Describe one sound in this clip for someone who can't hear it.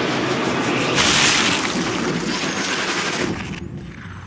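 A bullet smacks into a body with a heavy, wet impact.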